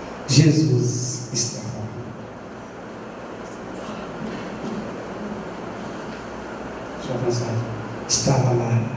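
A man speaks slowly and with emphasis into a microphone, with pauses between phrases.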